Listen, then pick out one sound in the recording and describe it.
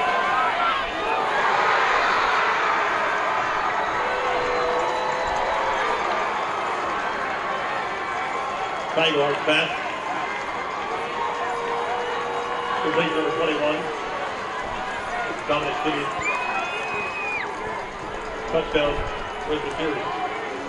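A crowd cheers and murmurs in an open-air stadium.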